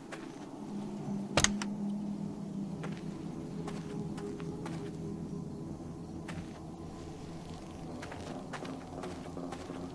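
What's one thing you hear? Car engines idle with a low steady hum.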